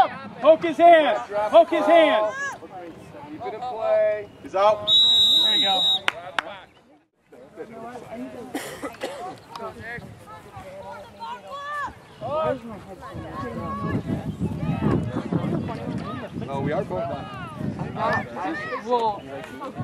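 Spectators and players shout and call out across an open field.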